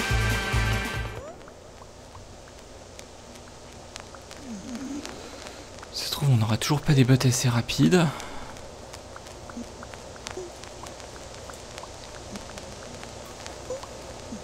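Short electronic blips and clicks of a retro video game sound now and then.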